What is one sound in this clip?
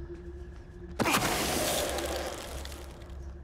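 A magical whoosh bursts and fades away.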